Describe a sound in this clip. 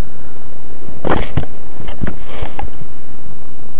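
A model plane thumps and rattles as it tumbles.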